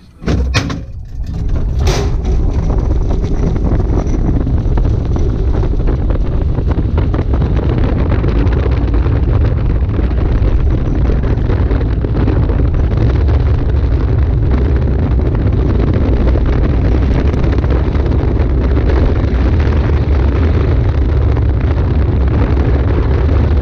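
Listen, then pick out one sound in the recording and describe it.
Wind rushes loudly past the open cockpit.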